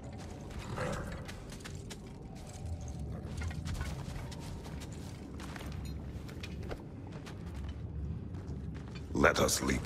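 A horse's hooves clop slowly on the ground.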